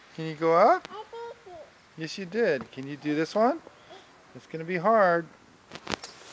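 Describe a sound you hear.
A small child calls out in a high, sing-song voice close by.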